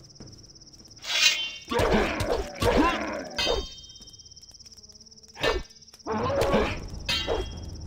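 A sword swishes through the air and clashes in a fight.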